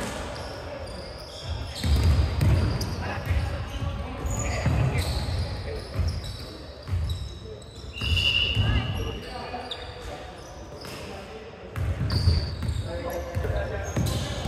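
Basketballs bounce on a wooden floor, echoing in a large hall.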